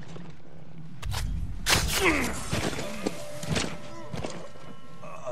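A blade slashes and strikes hard.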